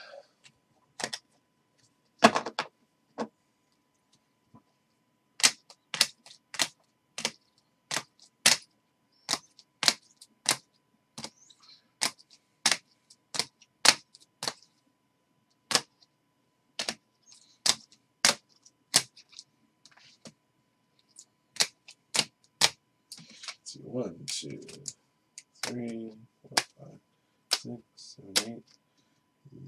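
Trading cards snap and slap as they are flipped one by one.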